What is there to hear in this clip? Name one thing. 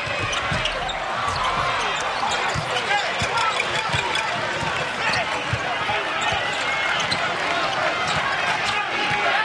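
A basketball bounces with dull thuds on the court.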